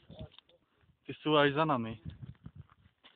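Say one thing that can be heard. A young man speaks animatedly close by, outdoors.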